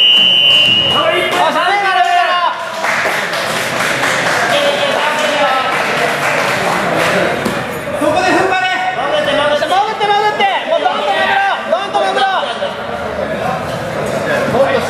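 Men shout loudly nearby in an echoing hall.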